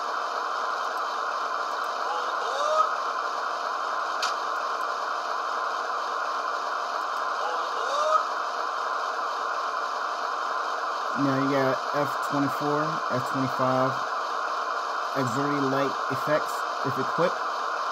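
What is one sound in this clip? A model diesel locomotive's engine idles with a steady, rumbling drone.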